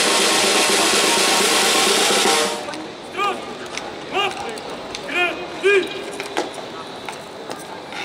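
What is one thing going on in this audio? A snare drum beats outdoors.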